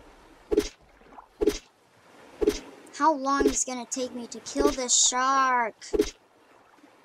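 A spear jabs with a dull thud, again and again.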